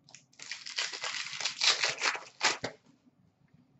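Cards rustle and flick as they are sorted by hand.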